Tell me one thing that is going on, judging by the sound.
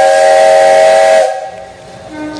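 A steam locomotive's whistle blows loudly and then stops.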